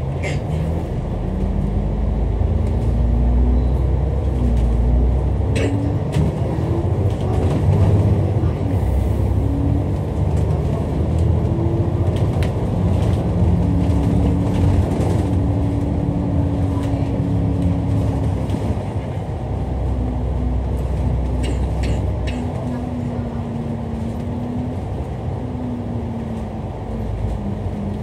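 Traffic rushes past on a road outdoors.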